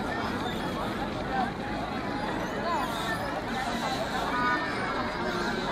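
A large crowd of people chatters and calls out all around, outdoors.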